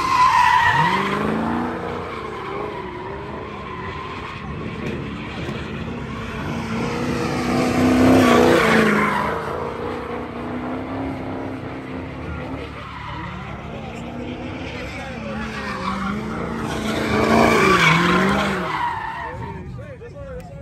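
Tyres screech as a car spins on pavement.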